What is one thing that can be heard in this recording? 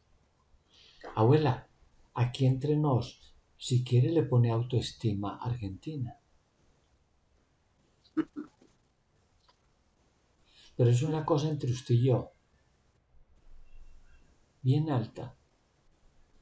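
An older man speaks calmly over an online call, in short bursts with pauses.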